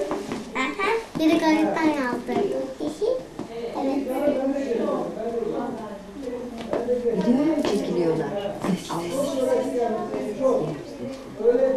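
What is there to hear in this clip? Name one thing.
A second young girl speaks softly close by.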